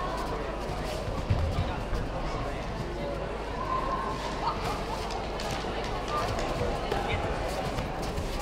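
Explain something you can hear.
Padded gloves thud against bodies in quick blows.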